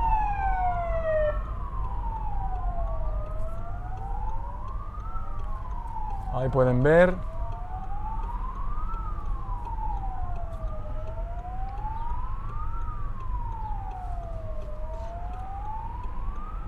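Police sirens wail, rising and falling throughout.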